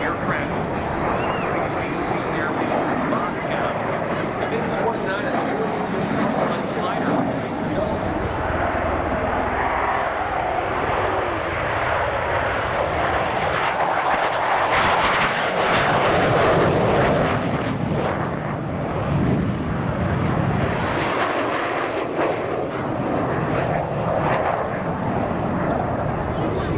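Jet engines roar loudly overhead, swelling as the jets pass close by.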